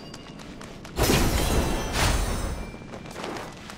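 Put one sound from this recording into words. A magical shimmering whoosh swells and fades.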